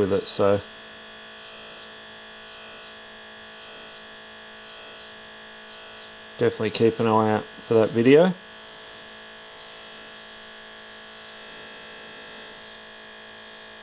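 An airbrush hisses softly as it sprays.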